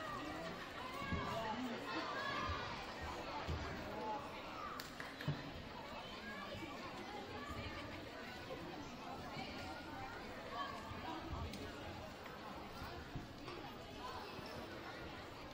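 Children's feet thump on a wooden floor.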